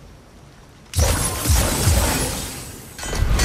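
A magic orb bursts open with a loud crackling hum.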